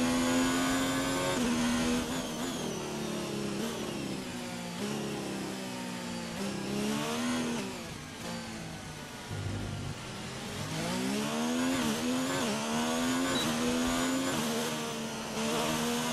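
A racing car engine screams, rising and falling in pitch as it shifts gears and brakes.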